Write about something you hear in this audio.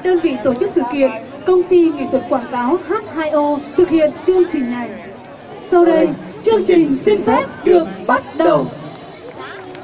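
Young people talk and shout loudly close by in an outdoor crowd.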